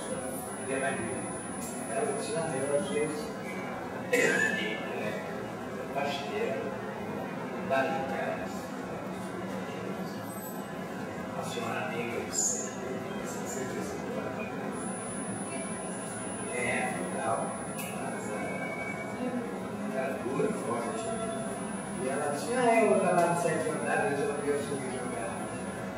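An elderly man speaks calmly and slowly, with pauses, close to a microphone.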